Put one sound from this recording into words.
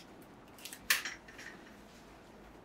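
A craft knife blade clicks as it slides out.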